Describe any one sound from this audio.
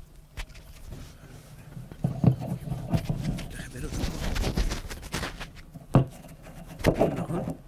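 A book's pages rustle as they are handled.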